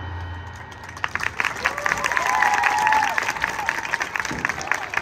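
Drums in a marching band beat a fast, sharp rhythm.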